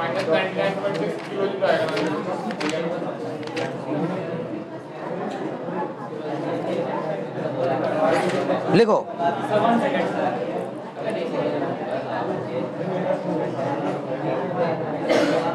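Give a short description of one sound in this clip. A man speaks steadily and calmly into a close microphone, explaining.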